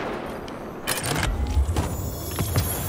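A rifle fires a few sharp shots.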